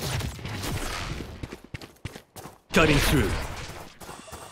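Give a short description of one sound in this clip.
An energy ability crackles and whooshes in a video game.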